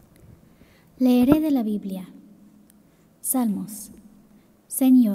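A young girl speaks into a microphone in a drawn-out, sing-song voice.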